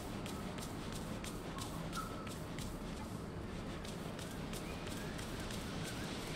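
Soft footsteps patter on grass.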